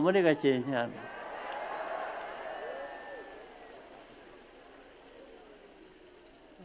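A large crowd cheers and shouts, then fades.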